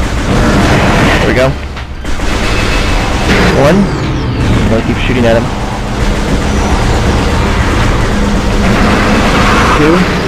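A large creature roars.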